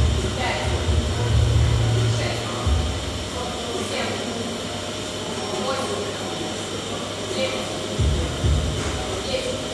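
A barbell thuds onto a rubber floor.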